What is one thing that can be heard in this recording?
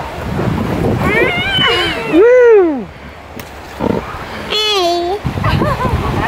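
A small child babbles and squeals.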